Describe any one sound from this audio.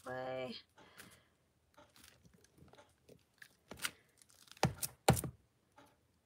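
A stamp block taps down onto paper.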